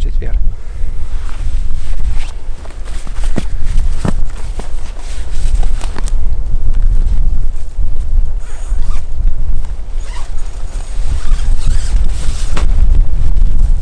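Tent fabric rustles as a man handles it.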